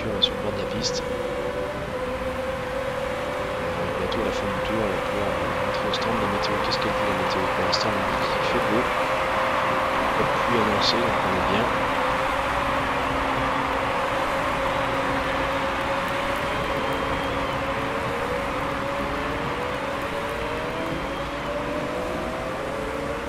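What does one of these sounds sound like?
Racing car engines whine and drone steadily, rising in pitch as they speed up.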